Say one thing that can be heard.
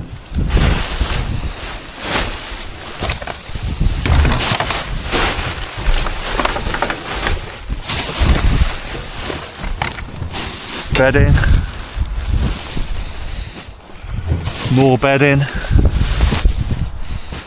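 Plastic bags rustle and crinkle as rubbish is rummaged through.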